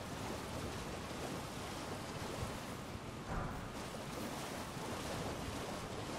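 Horse hooves gallop steadily over soft ground.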